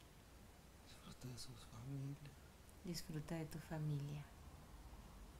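A middle-aged woman speaks softly and calmly nearby.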